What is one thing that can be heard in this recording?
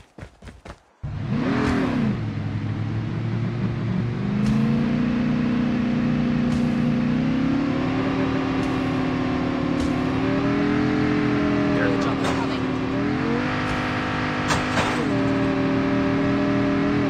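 A vehicle engine roars steadily, rising and falling in pitch.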